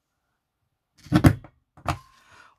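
A hand presses down on a table with a soft thump.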